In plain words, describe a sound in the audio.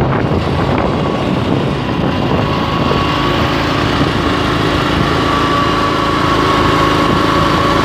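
A shovel scrapes through asphalt in a metal hopper.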